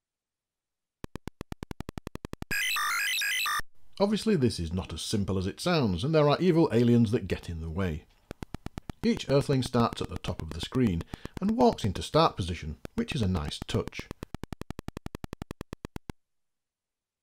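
Rapid electronic clicks tick steadily from a retro video game.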